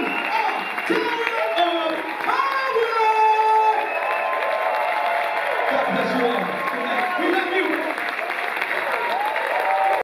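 A man sings energetically into a microphone.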